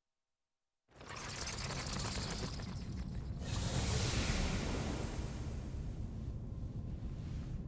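A glowing energy burst whooshes and rumbles.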